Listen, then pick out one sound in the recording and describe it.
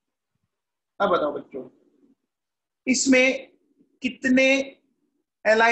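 A man speaks calmly and clearly into a close microphone, in short phrases.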